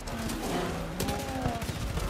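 A large beast roars loudly up close.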